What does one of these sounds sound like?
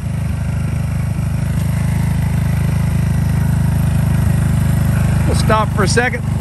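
A motorcycle engine rumbles steadily at a low pitch.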